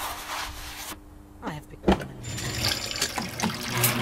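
A metal washing machine lid bangs shut.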